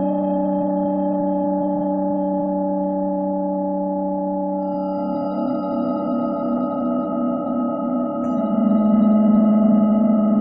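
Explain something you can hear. A steady electronic tone hums from a vibrating speaker, changing pitch partway through.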